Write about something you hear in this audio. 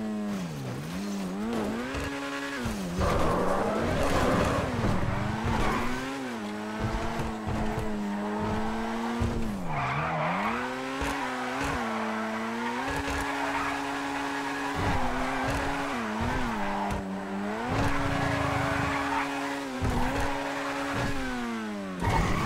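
A race car engine roars, revving up and dropping as gears shift.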